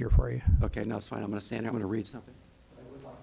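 A man speaks into a microphone, heard loud and close through a loudspeaker.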